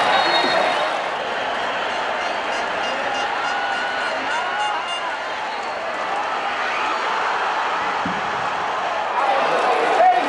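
A stadium crowd roars and cheers.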